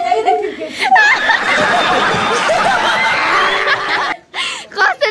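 A studio audience laughs loudly.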